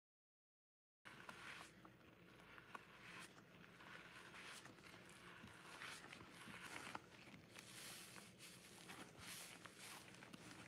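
Gloved hands squeeze a wet sponge, which squelches and crackles.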